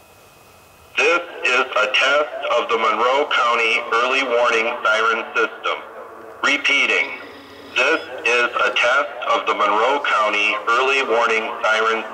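An electronic outdoor warning siren blares from a stacked loudspeaker tower in the distance outdoors.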